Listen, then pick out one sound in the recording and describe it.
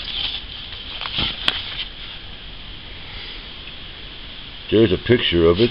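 Paper rustles as it is handled.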